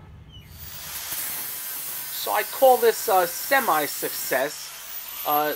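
An angle grinder whines as it grinds steel.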